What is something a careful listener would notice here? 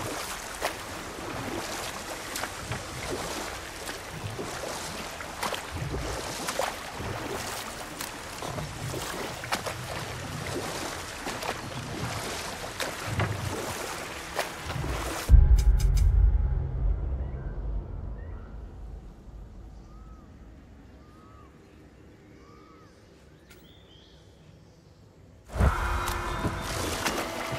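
A wooden paddle splashes and dips in water with a steady rhythm.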